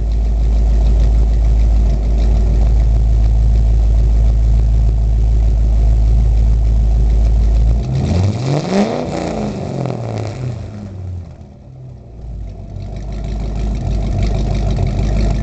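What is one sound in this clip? A car engine idles with a deep, loud exhaust rumble close by.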